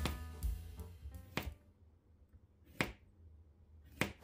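A knife chops through zucchini onto a cutting board.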